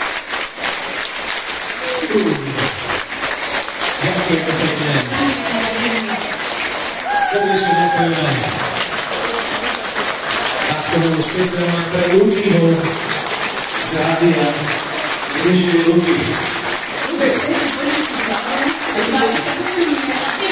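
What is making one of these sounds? A crowd claps along in rhythm in a large echoing hall.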